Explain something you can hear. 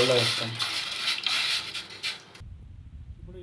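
Dry lentils pour and splash into a pot of water.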